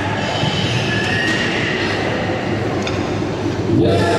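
A loaded barbell clanks onto its rack.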